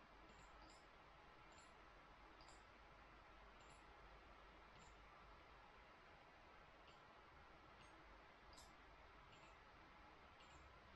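Keys on a keyboard click softly now and then.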